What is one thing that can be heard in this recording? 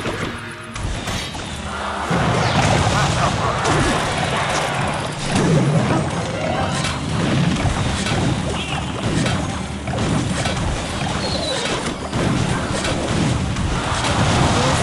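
Cartoonish battle sounds clash and explode in quick bursts.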